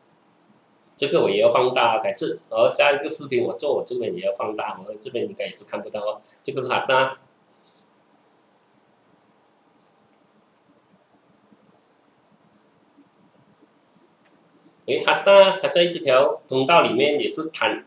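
A man talks calmly and steadily into a close microphone.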